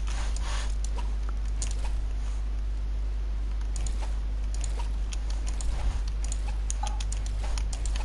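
A pickaxe swings and strikes.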